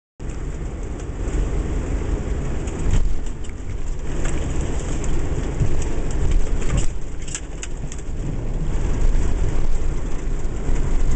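Waves break and wash over rocks.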